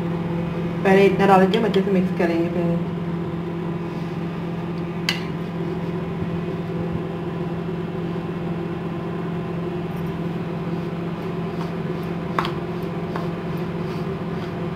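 A metal spoon stirs and scrapes against a ceramic bowl.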